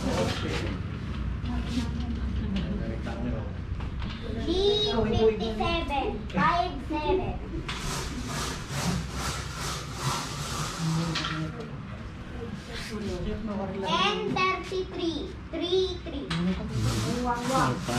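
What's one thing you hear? Plastic game tokens click on a table.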